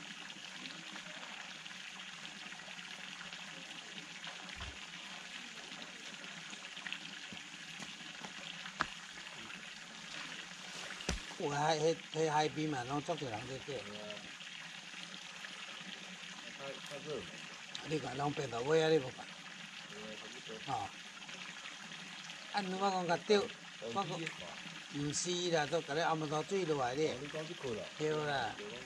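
Water splashes steadily from a small fountain into a pond.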